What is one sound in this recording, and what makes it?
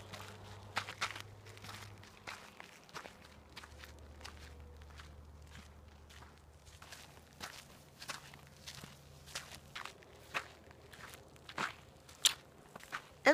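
Footsteps slap along a gravel path outdoors.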